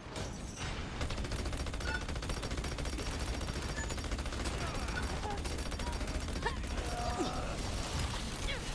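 A rapid-fire gun shoots in a fast, steady stream.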